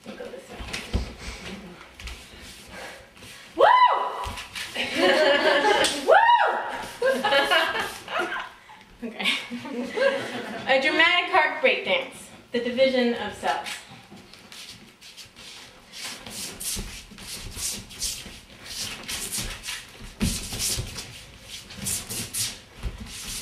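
Feet thump and shuffle on a wooden floor as a woman dances.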